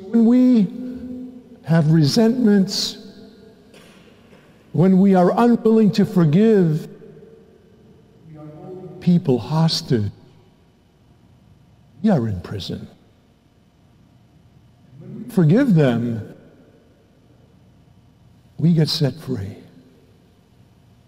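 A man chants in bursts through a microphone in a large echoing church.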